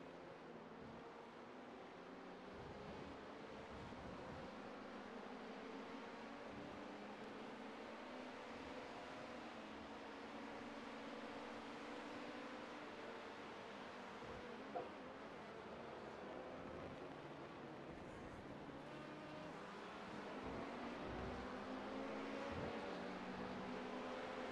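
Racing car engines roar steadily, rising and falling in pitch.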